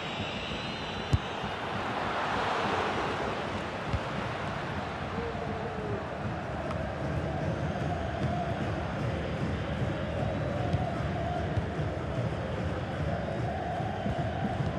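A large crowd roars and chants steadily in a big stadium.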